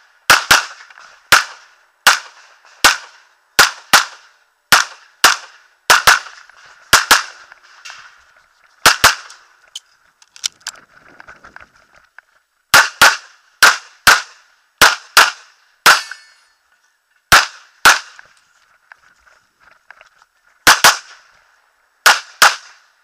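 A pistol fires sharp, loud shots in quick pairs and bursts outdoors.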